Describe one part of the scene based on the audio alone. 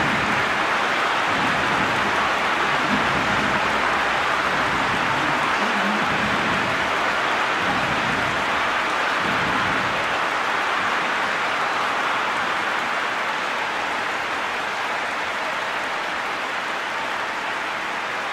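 A large stadium crowd cheers and roars steadily, slowly fading.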